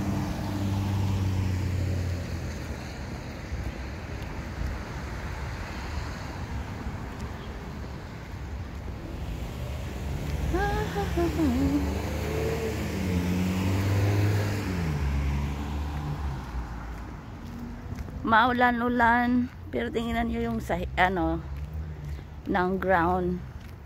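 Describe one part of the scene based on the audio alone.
Footsteps tap on a concrete pavement.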